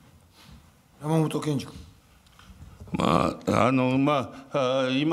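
A man speaks loudly and formally into a microphone.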